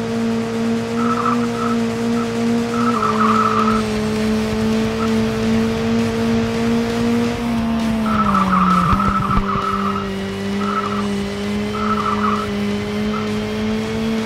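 Tyres screech in bursts through a bend.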